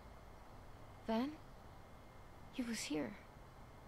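A young woman speaks softly and briefly.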